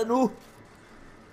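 A man exclaims loudly through a microphone.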